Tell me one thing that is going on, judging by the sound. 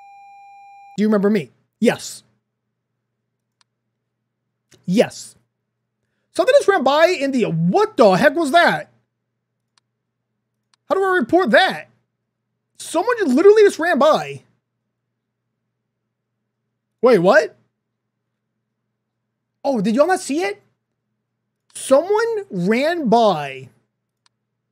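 A young man talks with animation into a close microphone, in short bursts with pauses.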